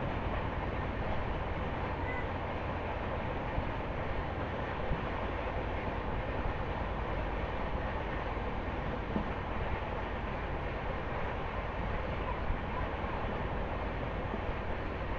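Wind rushes loudly past an open train door.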